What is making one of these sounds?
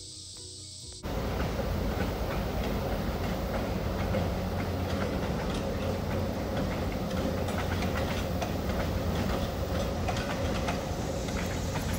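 A train rumbles past in the distance.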